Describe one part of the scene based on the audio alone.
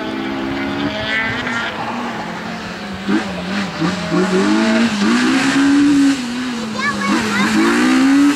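A car engine revs hard, rising and falling as the car weaves closer.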